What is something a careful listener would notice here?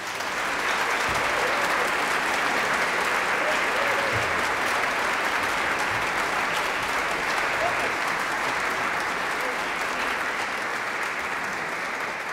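A large choir sings together, echoing in a vast reverberant hall.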